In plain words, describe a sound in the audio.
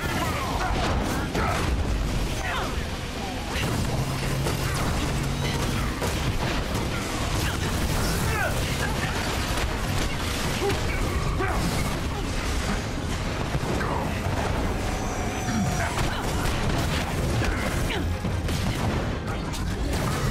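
Jet thrusters roar steadily.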